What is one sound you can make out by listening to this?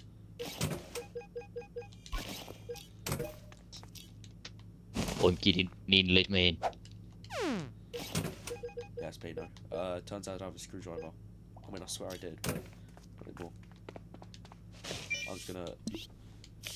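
Short electronic blips and clicks sound as game menus open and close.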